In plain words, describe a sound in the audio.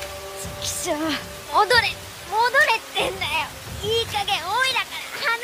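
A boy shouts in frustration.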